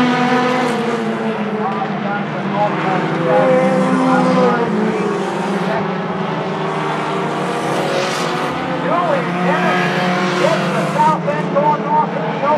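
Race car engines roar loudly as the cars speed around a track.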